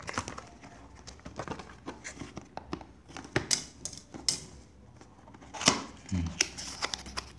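Fingers tap and scrape against a cardboard box close by.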